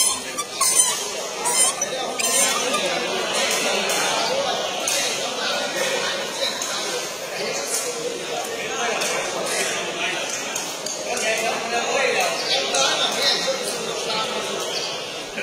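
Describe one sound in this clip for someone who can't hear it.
A large crowd chatters and murmurs throughout.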